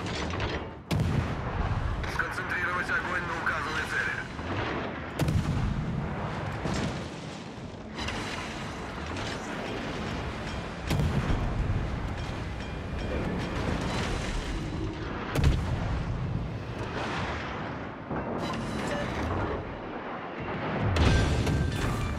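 Heavy naval guns boom in loud, rumbling blasts.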